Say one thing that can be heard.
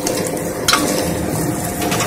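A spoon scrapes and clinks inside a metal pot.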